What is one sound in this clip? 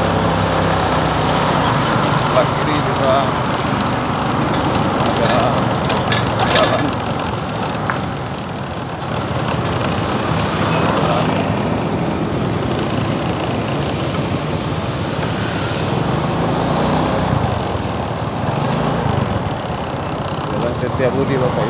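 A motor scooter engine hums steadily close by.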